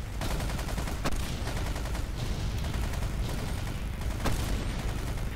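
A sniper rifle fires sharp single shots.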